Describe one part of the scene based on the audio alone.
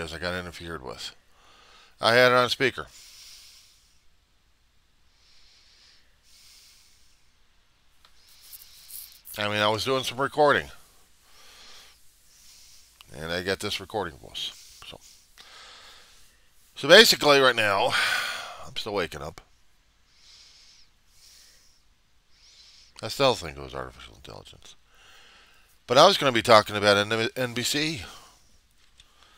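A middle-aged man talks calmly into a headset microphone, in short bursts with pauses.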